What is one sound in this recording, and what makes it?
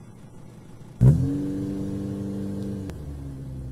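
A car engine starts with a sudden roar and then runs with a steady rumble.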